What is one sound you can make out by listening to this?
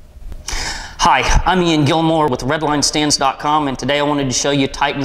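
A man speaks calmly and clearly, close to a microphone.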